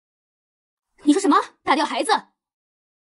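Another young woman speaks in a shocked tone.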